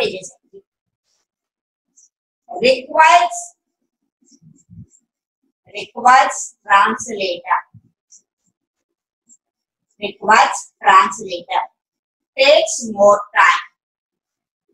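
A woman speaks calmly and clearly in short phrases, close by.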